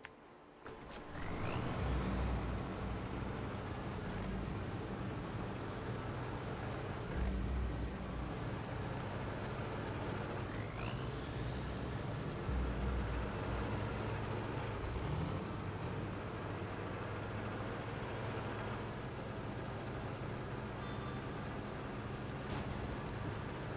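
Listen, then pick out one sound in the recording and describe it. Tyres crunch over snow and rocks.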